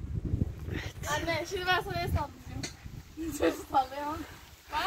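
A young woman talks and laughs nearby.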